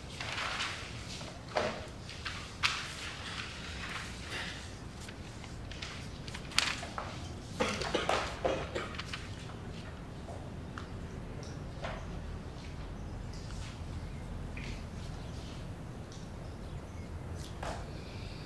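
Pens scratch softly on paper.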